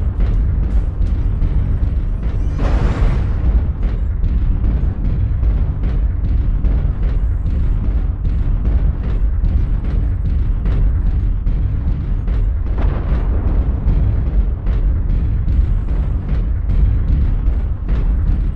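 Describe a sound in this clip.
A heavy machine hums with a deep, steady rumble.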